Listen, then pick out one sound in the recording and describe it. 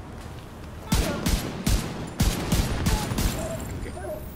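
A rifle fires several sharp shots in quick bursts.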